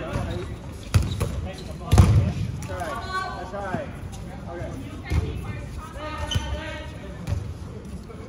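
Balls thump on a hard floor and off players.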